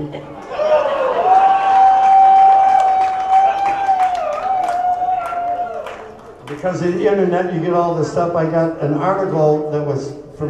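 A man sings loudly through a microphone, holding a long note.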